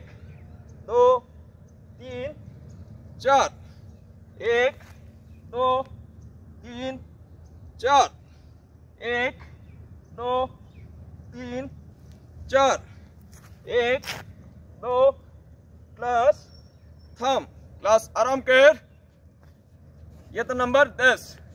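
A man calls out counts in short, evenly spaced bursts, close by.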